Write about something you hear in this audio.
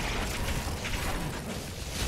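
A flamethrower roars.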